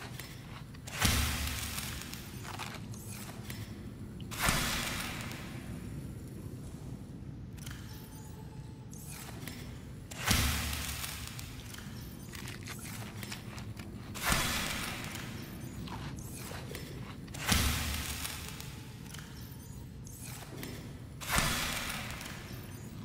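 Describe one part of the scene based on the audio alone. A game menu opens and closes with a soft whoosh, again and again.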